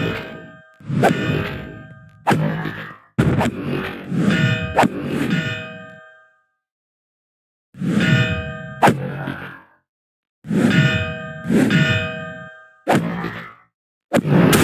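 Metallic clanks ring out as sword blows strike an armoured creature.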